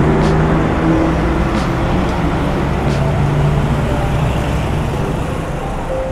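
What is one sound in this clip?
Traffic rumbles steadily along a nearby city street.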